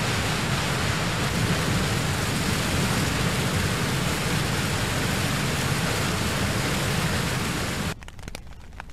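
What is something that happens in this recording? A waterfall roars loudly and steadily.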